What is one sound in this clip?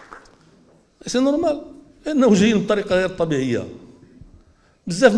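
An elderly man speaks forcefully into a microphone, heard through a loudspeaker.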